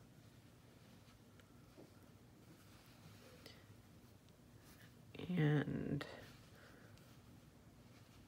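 Small beads click softly against each other as they are threaded onto a wire.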